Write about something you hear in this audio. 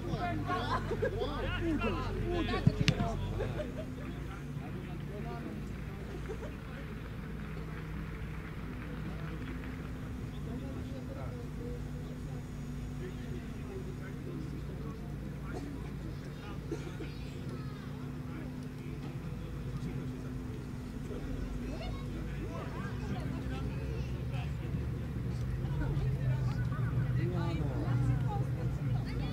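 Men shout and call to each other across an open field in the distance.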